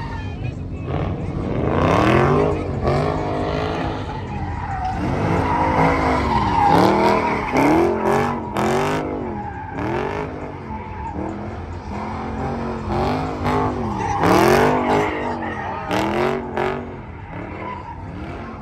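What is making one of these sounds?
A car engine revs hard, rising and falling again and again.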